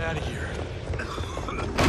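Heavy footsteps hurry across a hard floor.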